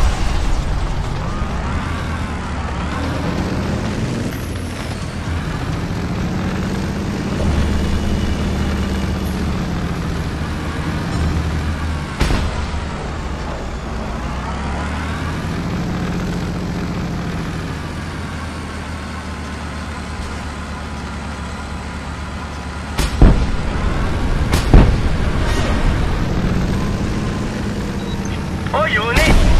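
A heavy vehicle engine rumbles and revs steadily.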